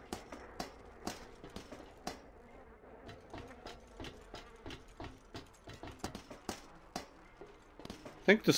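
Boots clank on metal ladder rungs.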